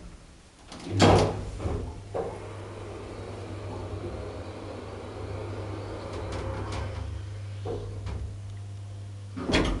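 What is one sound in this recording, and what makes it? An elevator motor hums steadily as the car moves.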